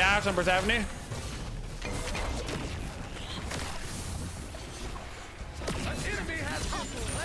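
A man speaks with animation, close to a headset microphone.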